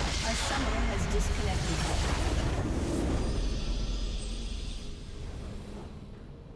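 A large structure explodes with a deep rumble.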